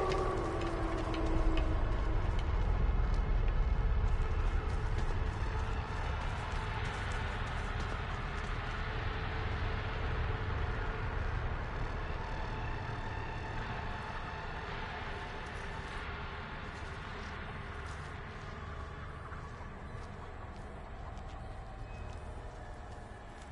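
Footsteps rustle through dense leafy plants.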